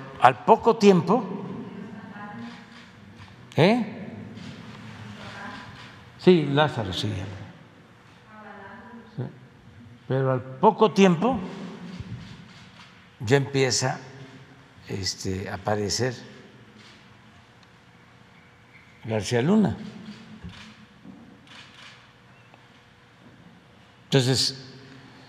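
An elderly man speaks slowly and deliberately into a microphone, with pauses, in a room with some echo.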